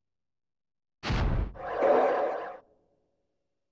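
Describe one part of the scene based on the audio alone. A video game plays a short electronic confirmation sound.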